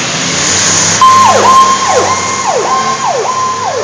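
A fire truck siren wails, rising and falling quickly.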